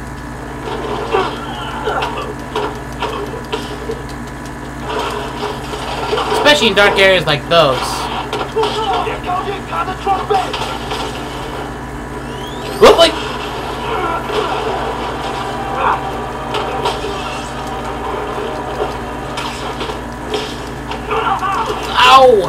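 Punches and blows land in a video game fight.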